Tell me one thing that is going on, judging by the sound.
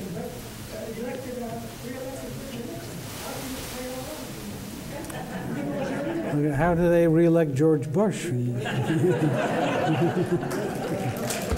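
A woman speaks through a microphone in a large room.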